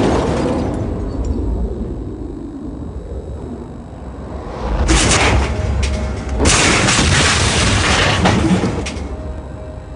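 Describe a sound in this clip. A car crashes and tumbles over with a loud metal crunch.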